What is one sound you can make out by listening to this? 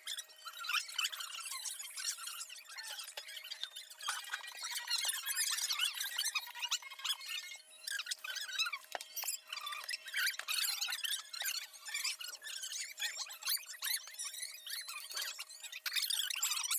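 Spoons and forks clink against plates.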